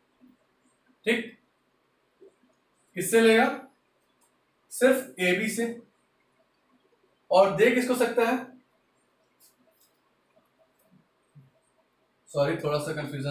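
A man speaks clearly and calmly in short bursts, close by.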